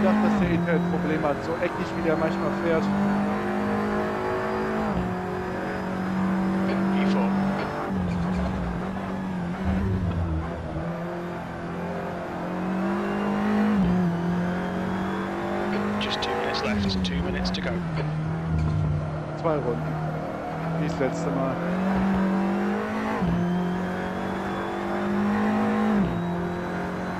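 A racing car engine roars steadily, rising and dropping in pitch as gears shift.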